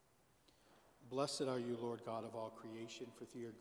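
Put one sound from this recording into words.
A man chants in a large echoing hall, heard through a microphone.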